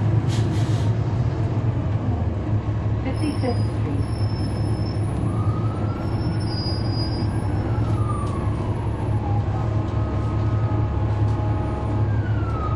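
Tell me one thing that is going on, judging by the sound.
A bus engine idles nearby with a steady low rumble.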